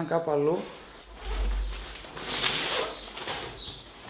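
A fabric bag rustles as it is rummaged through.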